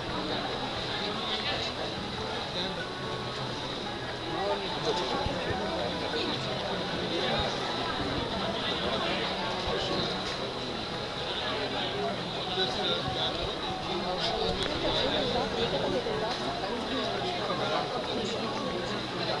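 A crowd of people chatters in a large hall.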